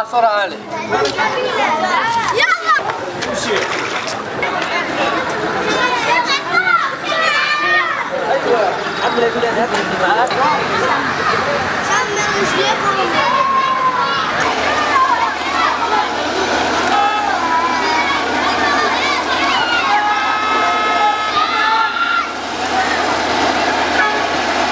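Feet splash and wade through shallow water.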